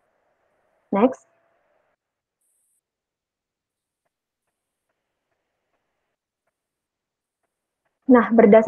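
A young woman speaks through an online call.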